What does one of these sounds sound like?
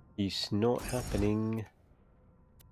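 A man speaks briefly and with animation, close to a microphone.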